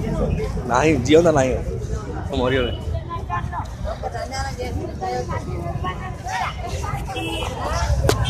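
A crowd of men and women talk loudly nearby, outdoors.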